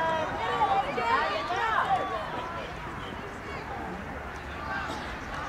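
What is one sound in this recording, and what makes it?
Young male players shout and call out to each other outdoors across an open field.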